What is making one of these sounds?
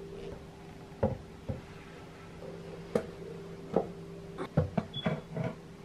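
A heavy metal sewing machine is set down into a wooden base with knocks and clunks.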